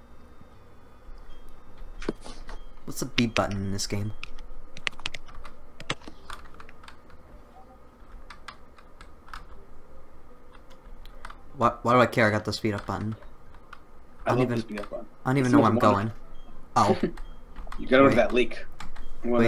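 Soft electronic game music plays in the background.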